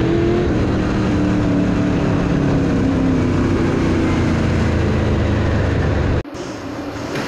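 A race car engine roars loudly up close, its pitch rising and falling.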